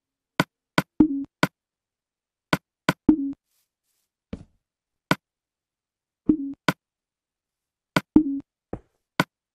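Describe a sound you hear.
Wooden blocks thump down into place.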